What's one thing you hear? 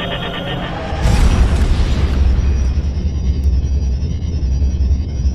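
A warp drive surges with a loud whooshing roar.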